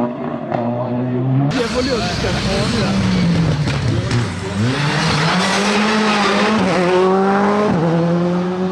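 A rally car engine roars loudly, revving up and down through the gears.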